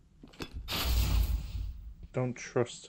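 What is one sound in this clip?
Electricity crackles and sizzles.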